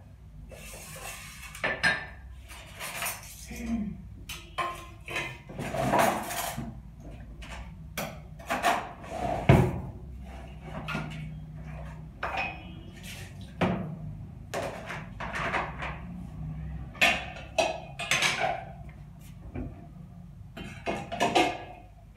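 Dishes and pots clatter and clink.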